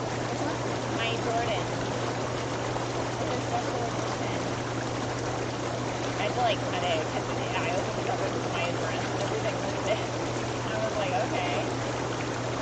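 Young women talk and laugh softly nearby.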